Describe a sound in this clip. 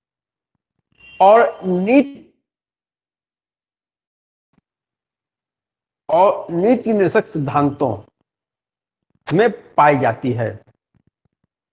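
A man speaks calmly into a close microphone, in short bursts with pauses.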